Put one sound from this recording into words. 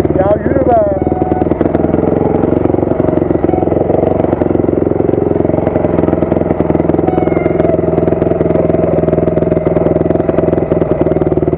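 Other dirt bike engines rev nearby.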